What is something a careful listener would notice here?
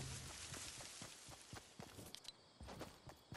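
Feet splash through shallow water.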